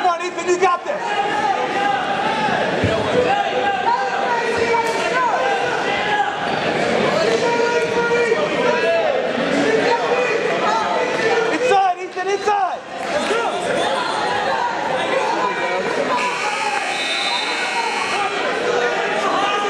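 Wrestlers' shoes squeak on a mat.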